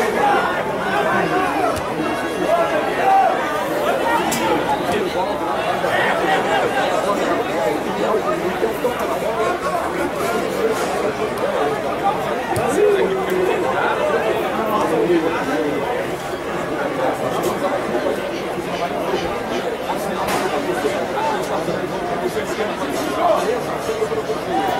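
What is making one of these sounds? A large crowd murmurs and chants steadily outdoors.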